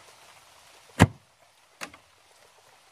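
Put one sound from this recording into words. A wooden pole knocks against a wooden frame.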